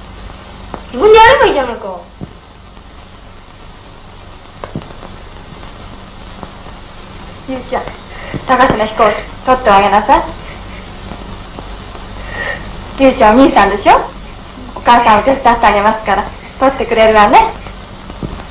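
A young boy speaks in short, lively phrases.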